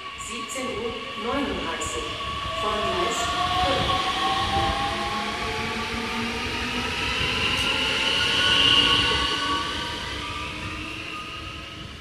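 A train's motors whine as it pulls away.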